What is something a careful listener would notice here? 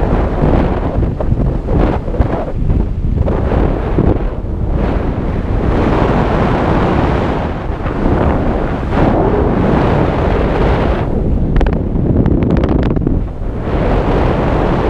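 Strong wind roars and buffets against a microphone high in the open air.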